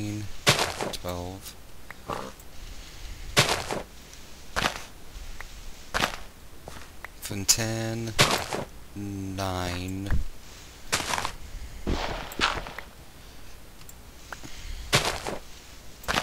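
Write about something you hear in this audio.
Blocks are broken and placed with short, soft thuds.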